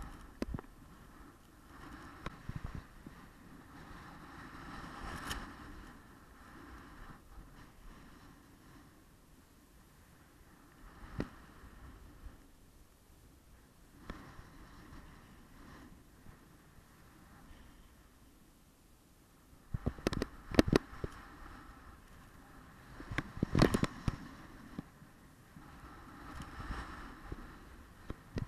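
Wind rushes outdoors.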